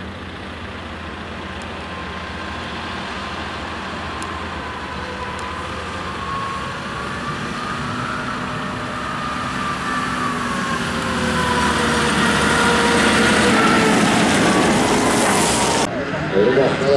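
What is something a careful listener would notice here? A tractor engine rumbles steadily as it drives past.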